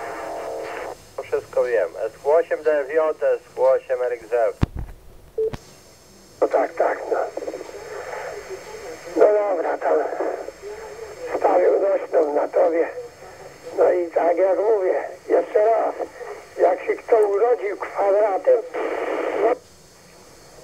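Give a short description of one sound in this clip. Radio chatter comes in short, tinny bursts from a small loudspeaker.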